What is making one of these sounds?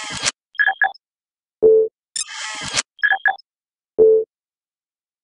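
Short electronic beeps and clicks sound from a computer game.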